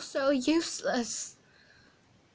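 A young woman speaks briefly and animatedly into a nearby microphone.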